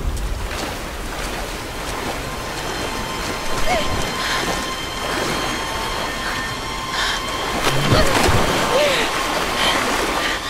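Fast water rushes and churns in rapids.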